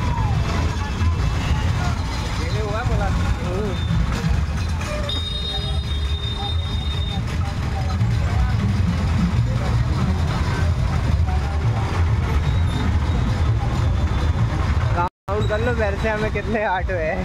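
Men talk loudly nearby in a busy street.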